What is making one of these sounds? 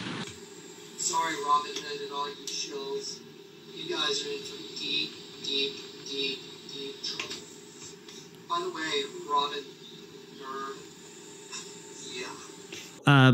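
An older man speaks through a muffled online call.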